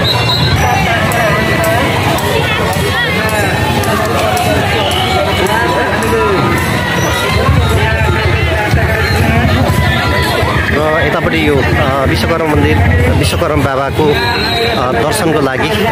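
A dense outdoor crowd of men and women chatters loudly with many overlapping voices.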